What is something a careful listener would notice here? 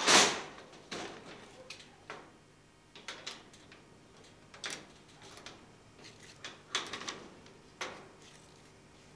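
A metal lock clicks and jingles.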